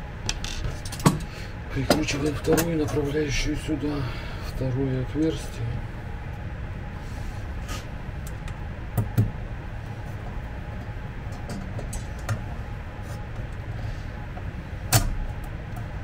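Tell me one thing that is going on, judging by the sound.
A tape measure clicks and taps against wood.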